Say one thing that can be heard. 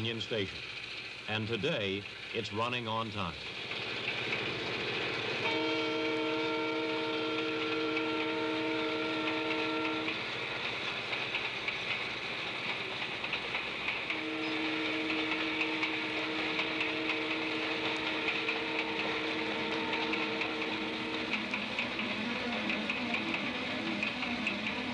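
A locomotive engine rumbles steadily.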